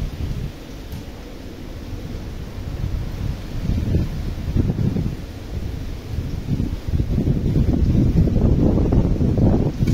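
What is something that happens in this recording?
Palm fronds rustle in the wind.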